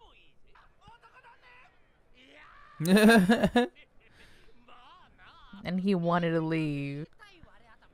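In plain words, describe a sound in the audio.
A young man laughs into a close microphone.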